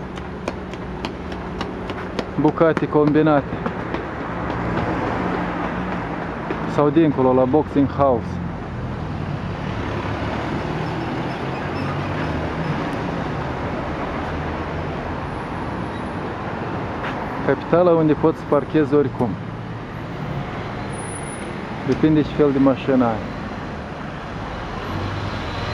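Traffic rumbles steadily along a city street.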